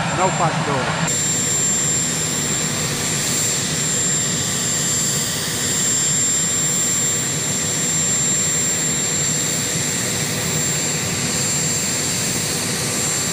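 A helicopter engine hums and whines steadily.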